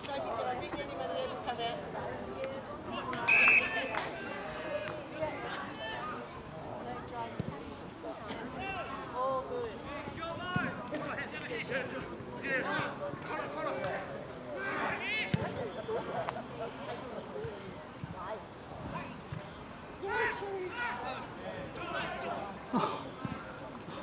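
Players shout and call to each other across an open field.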